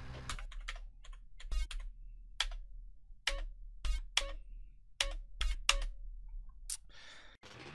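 Menu selection beeps click sharply several times.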